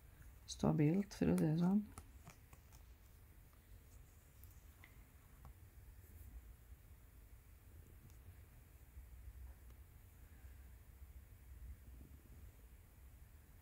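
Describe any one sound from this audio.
Thread rasps softly as it is pulled through cloth.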